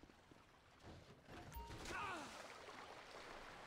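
Water splashes as a man jumps onto a small submarine.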